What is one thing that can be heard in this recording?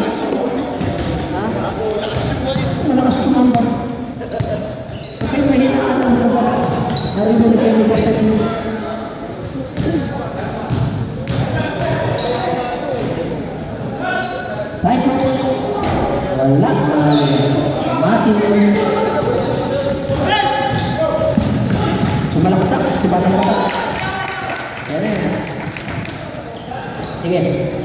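A basketball bounces on a wooden floor in a large echoing gym.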